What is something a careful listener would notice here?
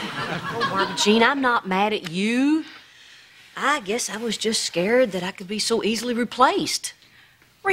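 A middle-aged woman answers with animation, close by.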